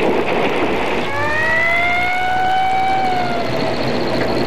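A fire engine siren wails.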